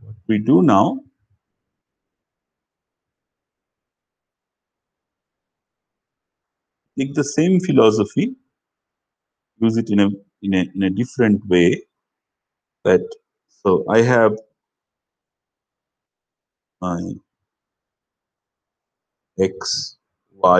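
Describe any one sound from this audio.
A man lectures in short phrases with pauses, close to a microphone.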